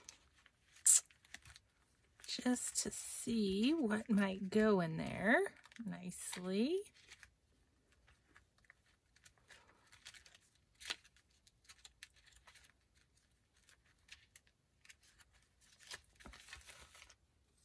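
A plastic bag crinkles as it is handled.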